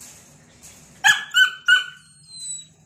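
Puppies yelp with a few short, high barks.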